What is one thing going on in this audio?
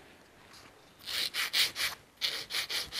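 A nail file rasps back and forth in quick strokes.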